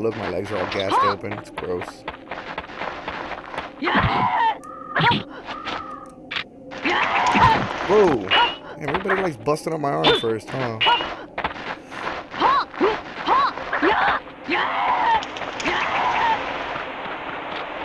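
Swords clash and ring sharply in quick bursts.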